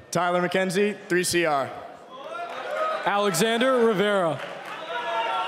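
A man shouts loudly into a microphone in a large echoing hall.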